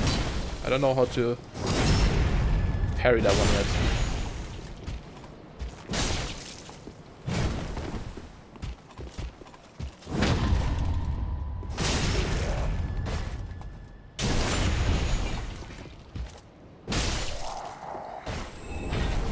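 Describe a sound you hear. Heavy metal weapons clash and thud in a fight.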